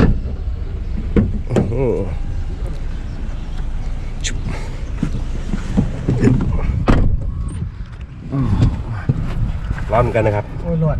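A man talks inside a car.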